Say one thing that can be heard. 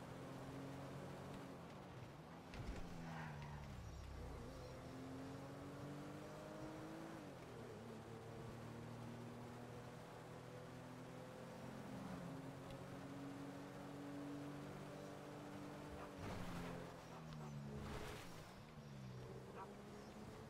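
A car engine hums and revs up and down steadily.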